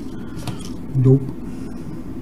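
A small circuit board is set down on a table with a soft thud.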